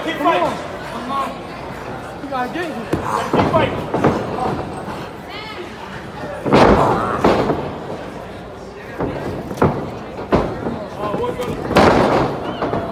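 A crowd of men and women shout and cheer in a large echoing hall.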